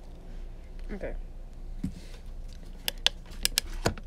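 A small plastic cube is set down on a table with a light knock.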